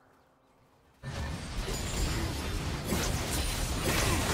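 Magic spells whoosh and crash in a fast video game battle.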